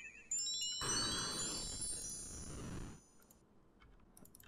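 A shimmering magical chime rings out and slowly fades.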